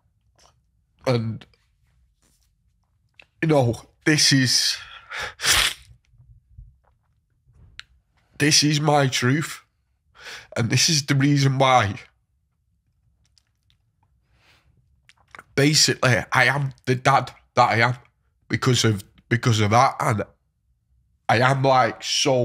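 A young man speaks emotionally into a close microphone, with pauses.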